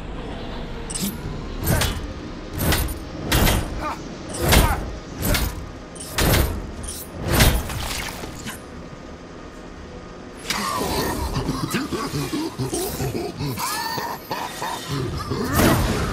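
Heavy punches land with loud thuds in quick succession.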